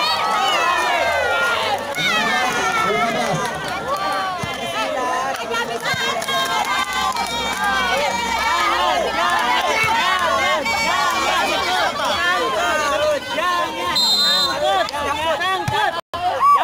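A crowd of people shouts and cheers loudly outdoors.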